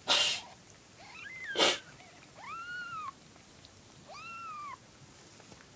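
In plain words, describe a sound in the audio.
A kitten mews close by in short, high cries.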